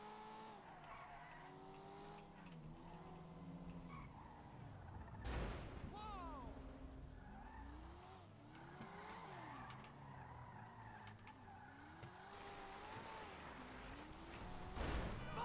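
Tyres screech on asphalt as a car drifts.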